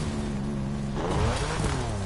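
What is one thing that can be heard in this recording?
A car crashes through a metal fence.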